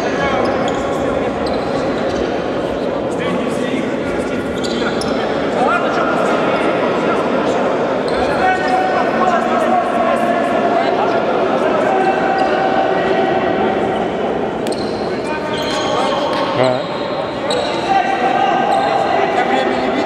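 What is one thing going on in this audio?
Sneakers squeak on a hard court in a large echoing hall.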